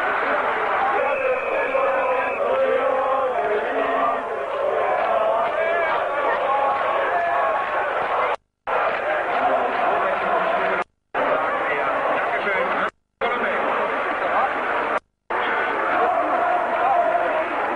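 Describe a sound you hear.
A crowd of men sings together nearby.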